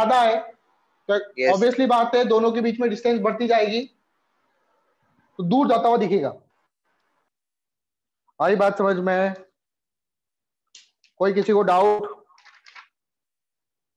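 A man speaks calmly in bursts, lecturing nearby.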